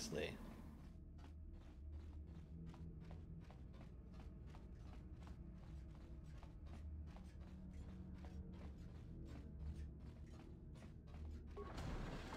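Footsteps tap quickly and evenly on a hard metal floor.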